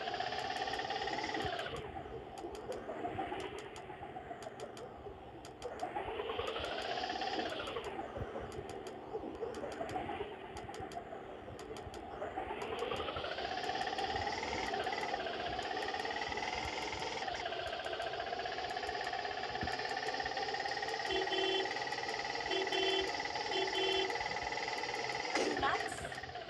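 A small three-wheeler engine hums and revs up and down as it speeds along.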